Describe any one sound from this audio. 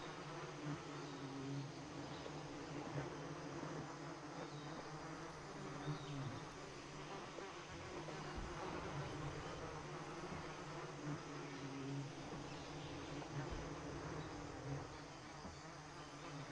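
Leaves rustle softly in a light breeze.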